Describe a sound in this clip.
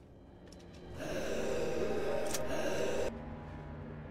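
Flames roar up with a loud whoosh.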